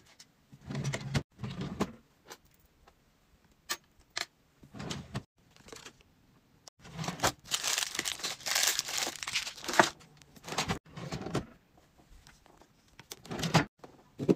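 A drawer slides open and shut.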